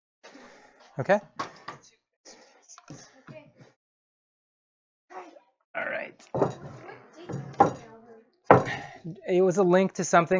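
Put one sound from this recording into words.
Wooden boards knock together as a man moves them.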